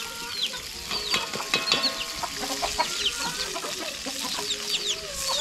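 A metal spoon scrapes and clinks against a frying pan.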